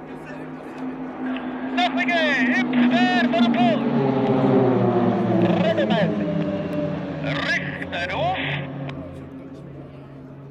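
Propeller planes roar past close by, their pitch dropping as they go.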